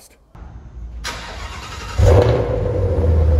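A powerful car engine starts up with a loud roar.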